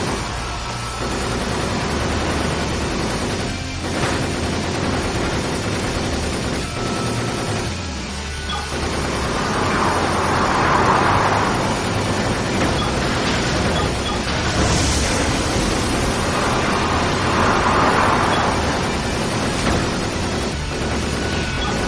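A flying robot's jet engines roar steadily.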